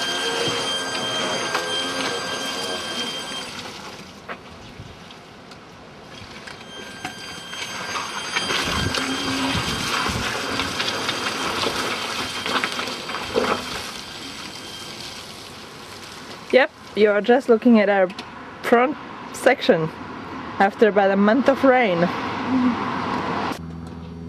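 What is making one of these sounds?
An electric car's motor whines with a steady high hum.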